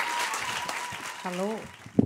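A young woman speaks into a microphone over a loudspeaker.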